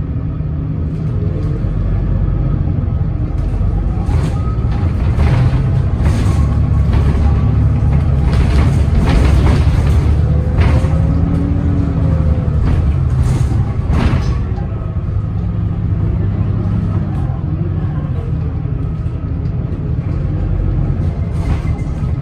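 A bus body rattles and clatters over the road.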